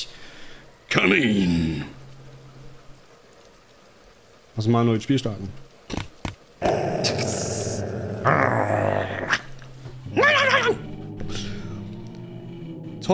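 Two men talk with animation through microphones.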